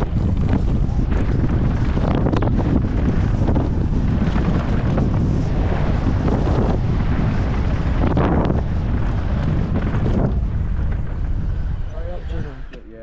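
Wind roars loudly past a microphone.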